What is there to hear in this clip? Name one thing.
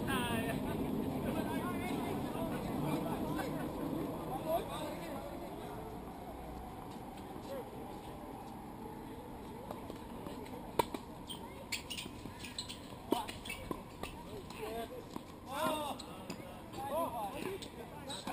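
Players call out across the courts in the distance.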